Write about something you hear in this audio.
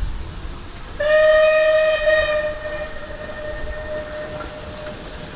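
A steam locomotive whistle blows long and steady, then fades.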